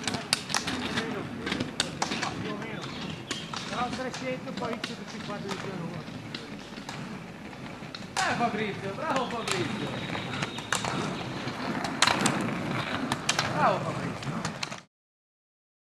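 Roller ski wheels rumble along a road.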